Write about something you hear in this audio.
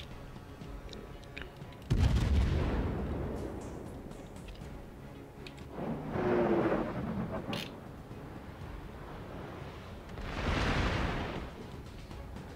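Shells explode with loud blasts and splashes.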